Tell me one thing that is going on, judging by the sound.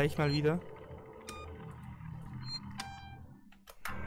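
A button on a wall phone clicks as it is pressed.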